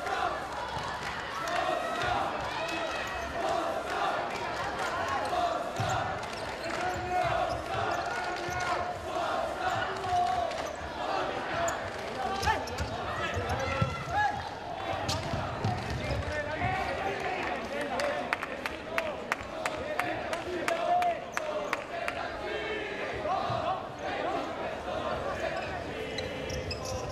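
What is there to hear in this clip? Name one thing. A crowd cheers and chants in a large echoing hall.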